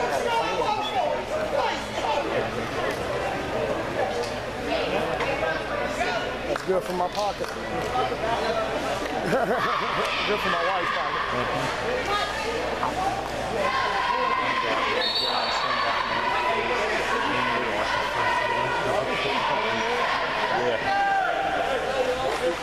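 A crowd of young players and spectators chatters throughout a large echoing indoor hall.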